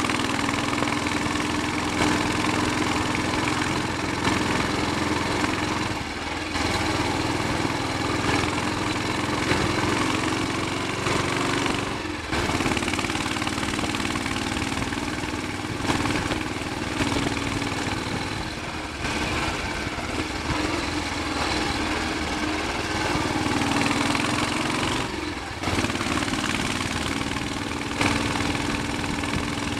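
Wind buffets a microphone on a moving motorcycle.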